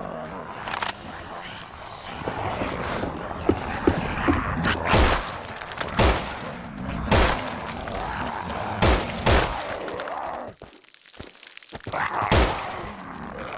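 Gunshots fire in sharp bursts, ringing in a close room.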